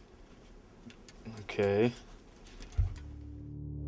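Clothes on hangers rustle and scrape.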